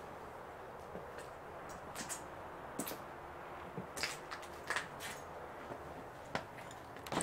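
Footsteps crunch over loose debris.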